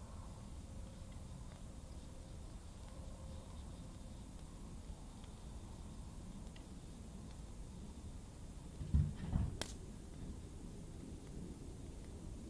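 A small fire crackles and pops softly.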